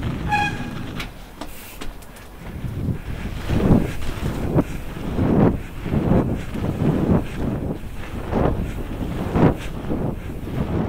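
Bicycle tyres roll and splash through slush and wet snow.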